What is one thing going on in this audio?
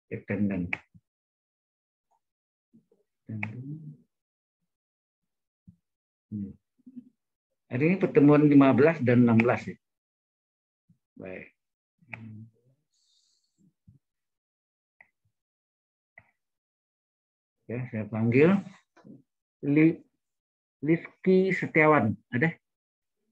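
A man speaks calmly in short bursts through an online call.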